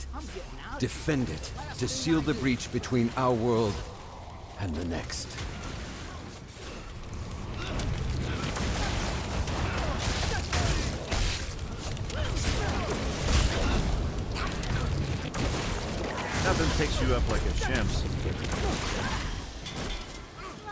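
Heavy blows thud in a close scuffle.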